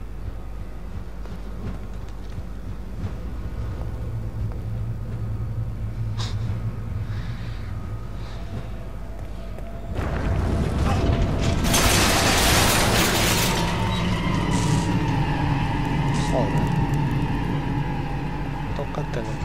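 Footsteps shuffle slowly over a hard floor.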